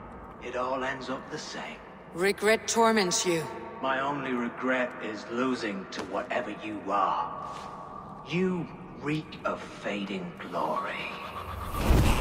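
A man speaks in a low, gravelly voice, close by.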